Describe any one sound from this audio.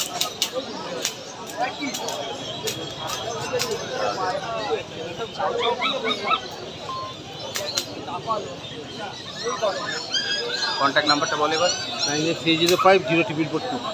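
A man speaks close by in a lively, talkative way.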